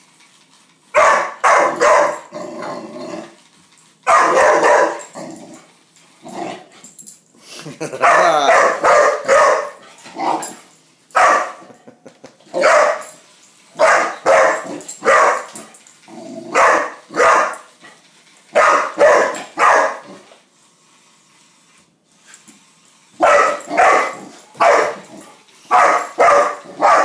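A puppy barks excitedly in short bursts.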